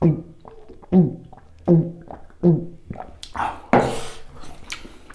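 A man gulps a drink loudly, close to the microphone.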